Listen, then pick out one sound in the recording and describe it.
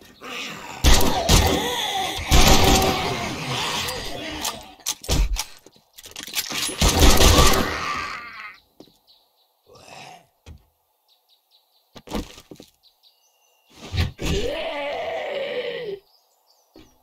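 A zombie snarls and groans.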